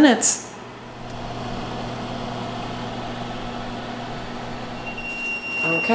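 An oven fan hums steadily.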